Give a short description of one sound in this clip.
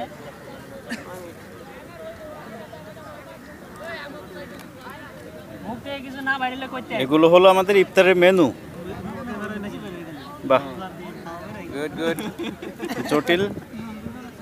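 Several young men talk and call out close by, outdoors.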